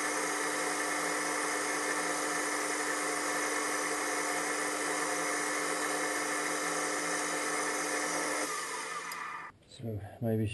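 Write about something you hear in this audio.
A lathe motor whirs steadily, then winds down.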